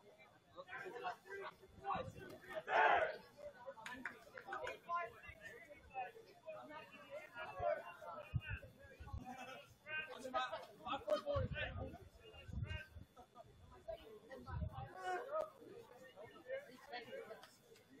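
Young players talk and shout at a distance, outdoors.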